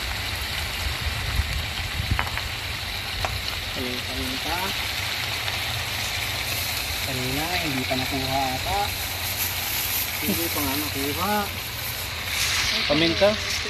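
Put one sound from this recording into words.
Meat sizzles and hisses steadily in a hot pan.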